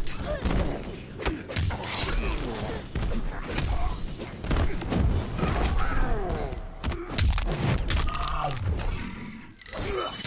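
Punches and kicks land with heavy thuds in a fighting game.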